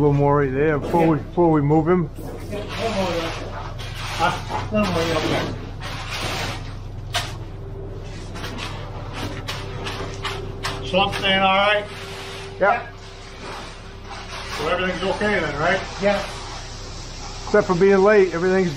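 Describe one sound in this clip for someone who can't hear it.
A rake scrapes through wet concrete.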